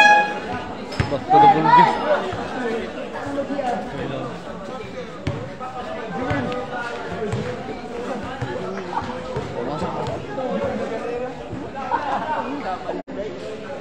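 Young men shout and call out across an outdoor court.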